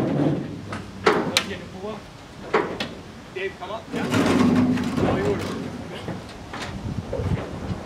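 A metal bar knocks and scrapes against a car's frame.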